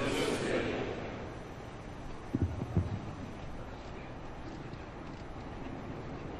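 A large crowd murmurs quietly outdoors.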